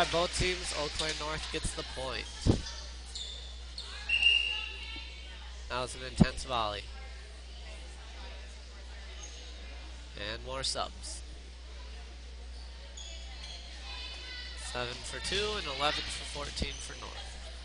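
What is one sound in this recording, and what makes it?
A volleyball is struck with sharp thumps in a large echoing gym.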